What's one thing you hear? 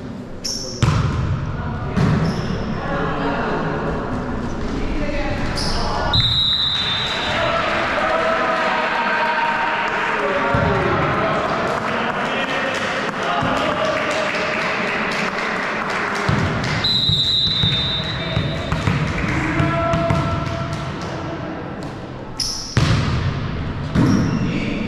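Young men shout and call out to each other in an echoing hall.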